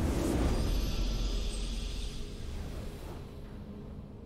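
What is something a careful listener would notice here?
A triumphant game victory sound bursts out and fades away.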